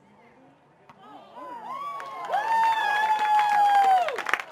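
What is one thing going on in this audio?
Young people shout and cheer loudly nearby.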